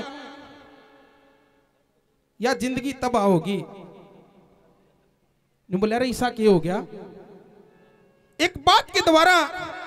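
A man sings into a microphone, heard through loudspeakers with a long echo.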